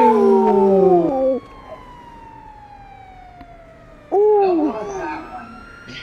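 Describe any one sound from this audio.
A police siren wails in short bursts.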